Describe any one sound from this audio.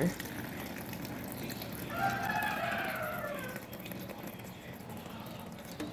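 Water pours from a tap into a bowl of water.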